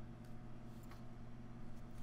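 Small plastic pieces tap softly on a table.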